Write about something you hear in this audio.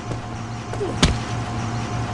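A heavy thud sounds once as something crashes down.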